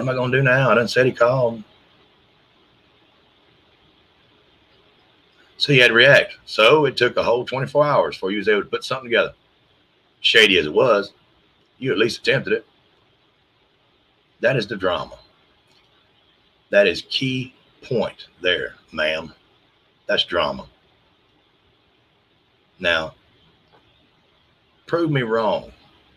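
A middle-aged man speaks calmly into a microphone in bursts with pauses, as on an online call.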